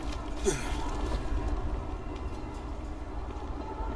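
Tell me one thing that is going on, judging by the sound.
Footsteps clatter across clay roof tiles.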